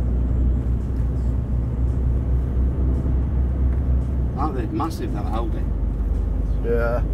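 A truck's engine rumbles steadily from inside the cab.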